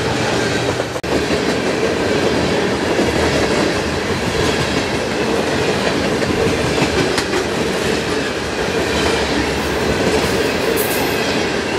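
A railroad crossing bell rings.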